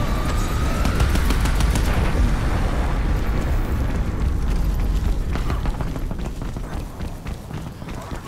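Footsteps tread steadily over the ground.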